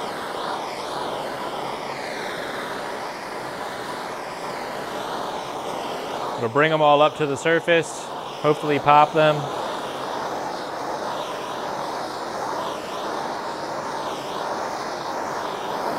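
A gas torch roars steadily.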